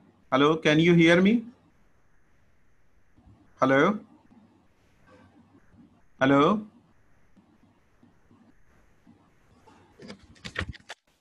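A middle-aged man speaks slowly in short bursts over an online call.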